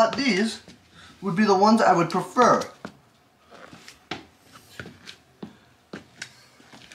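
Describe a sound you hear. Shoes tap in footsteps on a hard wooden floor.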